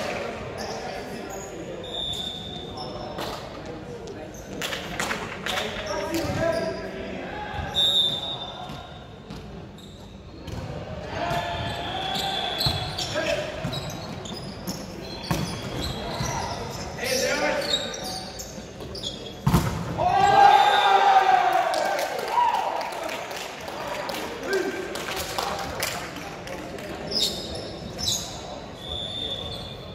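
Young men shout and call to each other in a large echoing hall.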